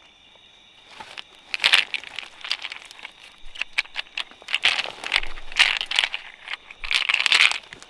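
Dry leaves rustle and crackle under a hand.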